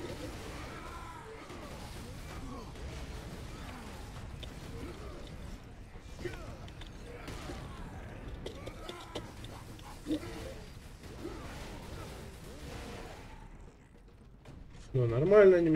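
Gunfire and combat sounds from a video game play.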